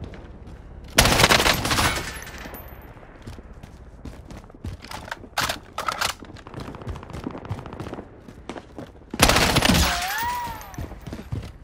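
A submachine gun fires loud rapid bursts.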